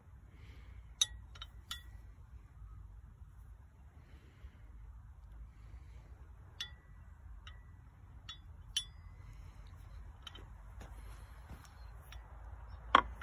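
Metal parts click and clink as they are fitted together.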